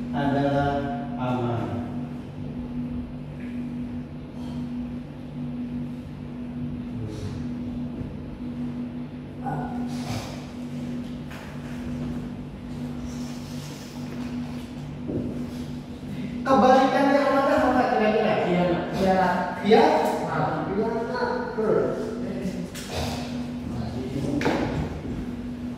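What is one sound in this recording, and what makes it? Young students talk to each other with animation, close by, in a room.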